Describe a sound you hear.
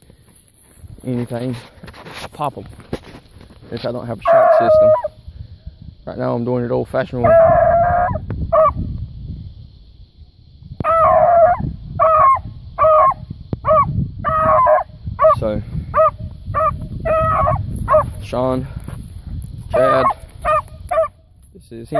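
A beagle barks and yelps excitedly at close range.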